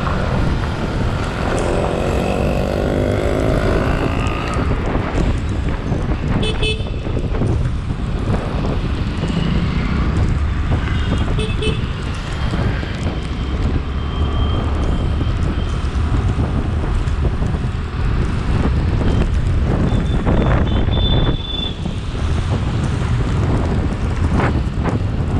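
A motorcycle engine runs while riding along a city road.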